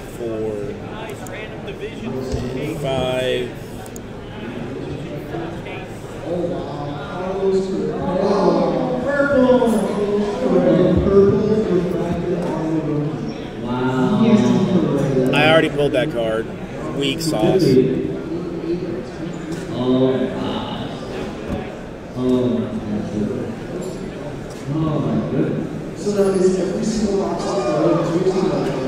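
A man talks casually and close to a microphone.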